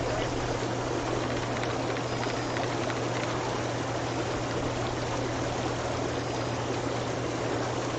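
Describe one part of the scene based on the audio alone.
Water splashes as a bucket scoops from a tub.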